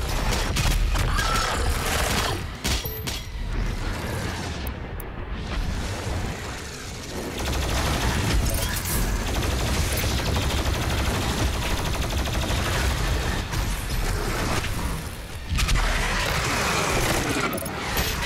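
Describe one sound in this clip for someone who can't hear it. Monsters growl and screech.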